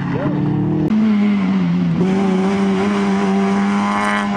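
A small hatchback rally car's engine revs hard as it races past.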